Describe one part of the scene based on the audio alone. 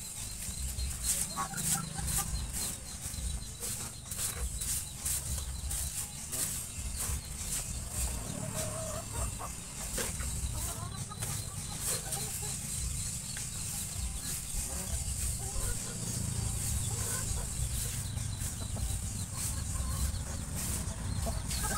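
A wooden stick taps and scrapes on the ground.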